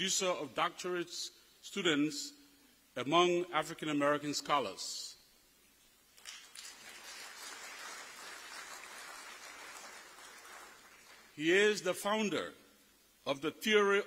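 A man speaks slowly and deliberately through a microphone in a large echoing hall.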